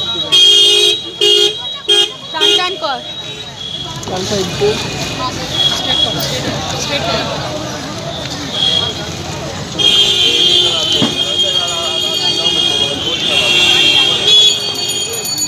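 A crowd of women chant slogans loudly outdoors.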